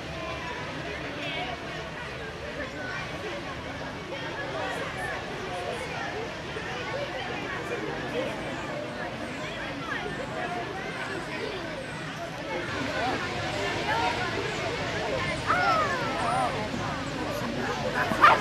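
A crowd of children chatter and call out outdoors.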